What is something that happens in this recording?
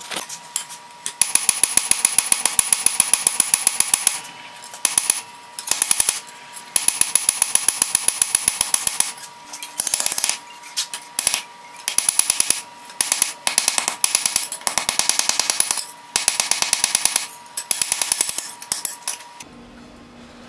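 A hammer rings sharply on an anvil in quick, steady bursts of blows.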